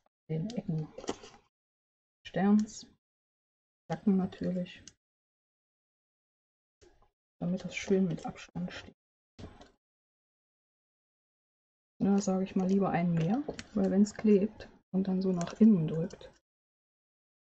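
A woman talks calmly and close to a microphone, in short bursts with pauses.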